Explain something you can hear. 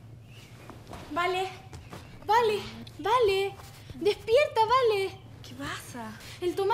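A young girl speaks loudly and with animation close by.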